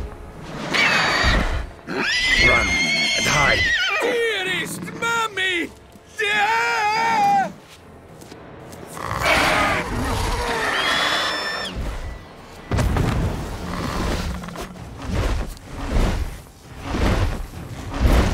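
A griffin screeches.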